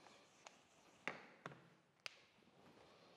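Knocks and taps sound against a board.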